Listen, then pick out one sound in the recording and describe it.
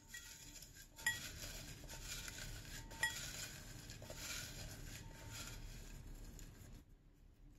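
Paper slips rustle and crinkle as a hand rummages through them.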